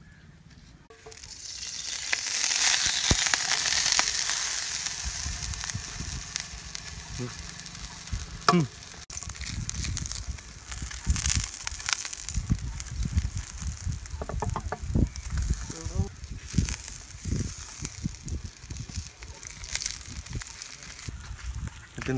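Oil sizzles loudly in a frying pan.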